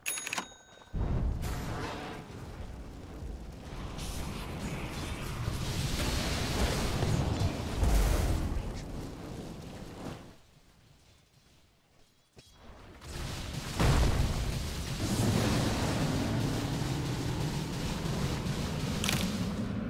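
Spell blasts and fiery whooshes roar in a fantasy battle.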